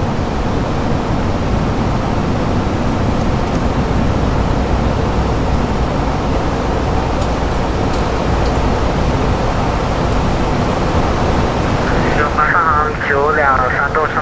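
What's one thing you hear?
Engines and rushing air roar steadily.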